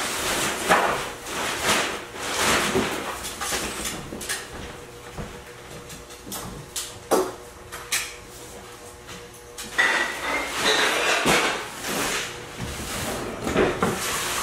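Footsteps thud on a creaky wooden floor.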